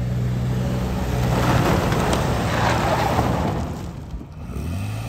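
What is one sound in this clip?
Tyres churn and spray mud.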